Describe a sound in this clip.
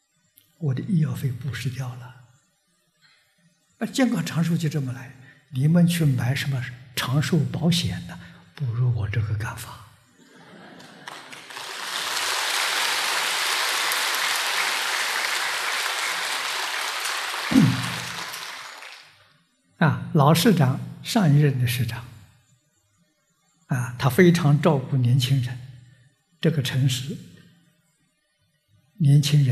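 An elderly man speaks with animation into a microphone, pausing often.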